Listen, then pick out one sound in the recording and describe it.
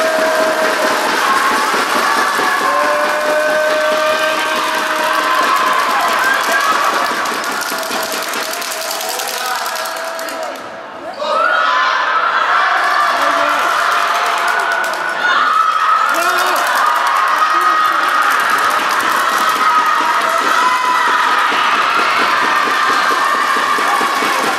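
Girls shout and call out to each other across the court.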